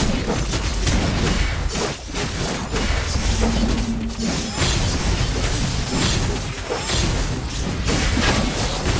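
Game figures clash with sharp hits and magic blasts.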